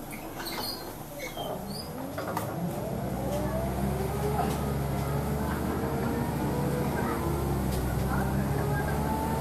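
A bus engine hums and rises in pitch as the bus pulls away.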